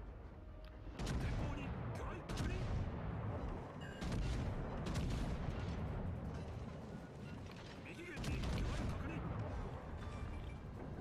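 Heavy naval guns fire with loud, deep booms.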